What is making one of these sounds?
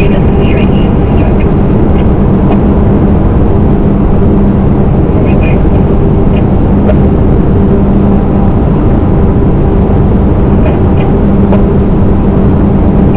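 Wind rushes loudly past a moving vehicle.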